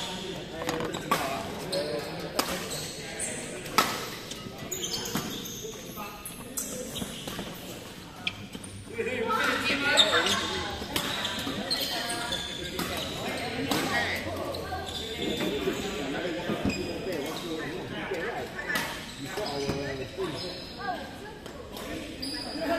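Shoes squeak and patter on the court floor.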